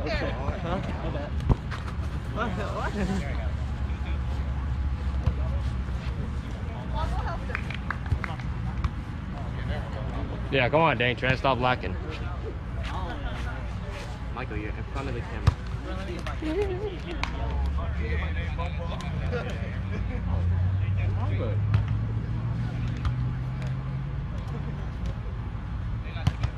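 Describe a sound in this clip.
Young people call out to each other across an open field outdoors.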